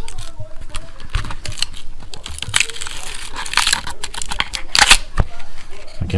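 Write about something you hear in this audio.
A flexible plate crackles as it is bent and peeled.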